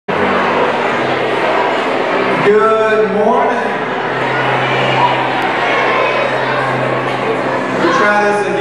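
A young man speaks with animation into a microphone through loudspeakers in a large echoing hall.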